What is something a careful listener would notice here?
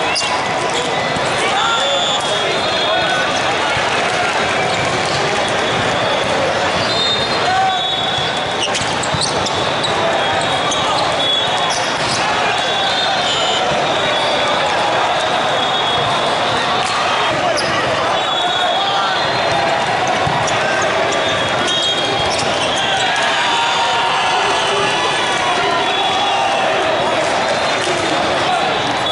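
Sneakers squeak on a hard court floor.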